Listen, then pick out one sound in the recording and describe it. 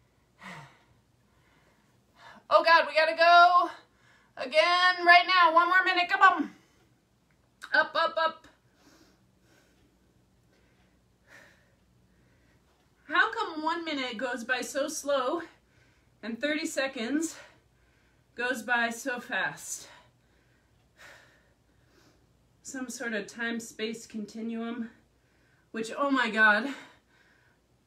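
A woman talks close by, in bursts, sounding strained as she exercises.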